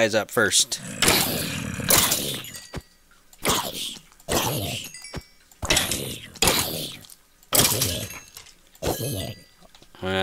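A sword strikes creatures again and again with short thuds.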